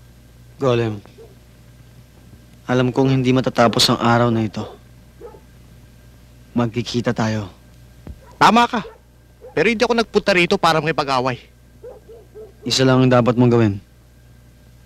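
Adult men talk in turn, close by and in a serious tone.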